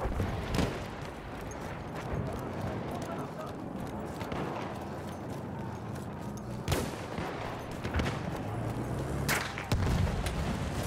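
Gunshots crack in the distance.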